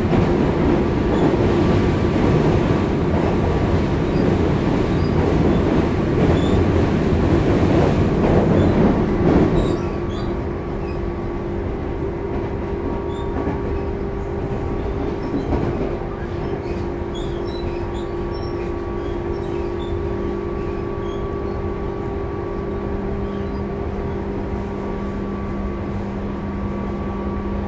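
A stopped electric train hums steadily close by.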